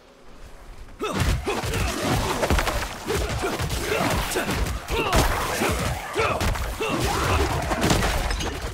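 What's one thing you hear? Game combat clashes and bursts of effects ring out loudly.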